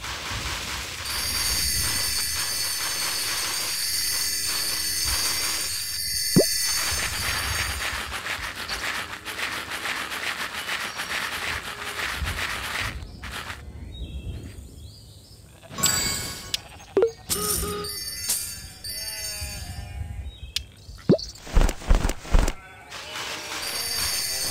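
Bright chimes ring as rewards are collected.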